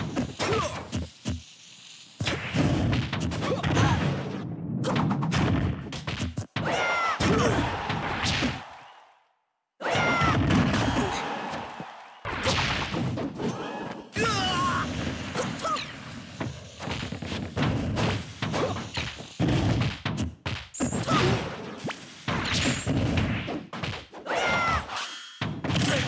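Cartoon fighters trade punches and kicks with sharp thuds and whooshes.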